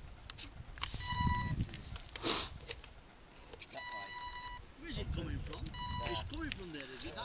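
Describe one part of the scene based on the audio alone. A radio controller beeps several times.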